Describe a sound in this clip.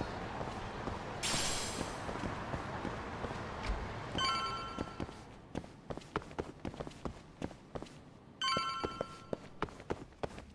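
Footsteps tap on a hard tiled floor at a brisk pace.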